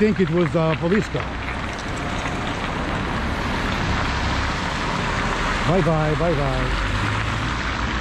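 Tyres hiss on wet pavement.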